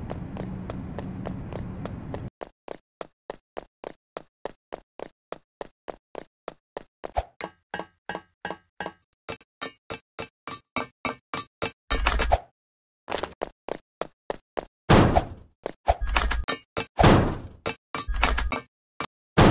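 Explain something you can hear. A game character's footsteps patter quickly and evenly.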